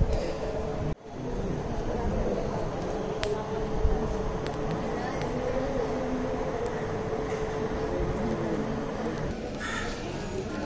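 A crowd of people murmurs and chatters around.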